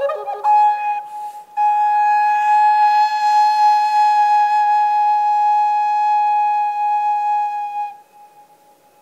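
A recorder plays a sustained, bright melody in an echoing hall.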